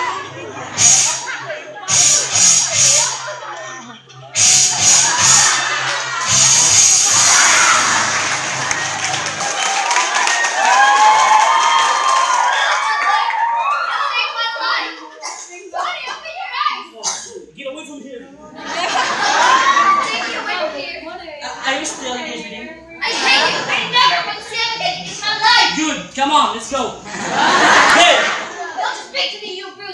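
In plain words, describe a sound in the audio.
Young men and women talk and shout with animation in an echoing room.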